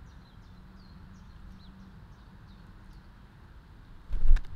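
Small birds chirp softly nearby.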